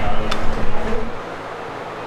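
An iron weight plate clanks onto a barbell.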